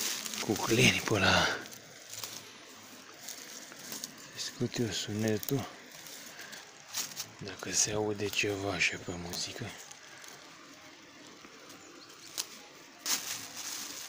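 Dry grass rustles and crackles under a hand.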